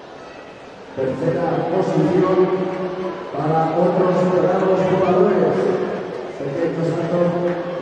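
A crowd of young people chants in a large hall.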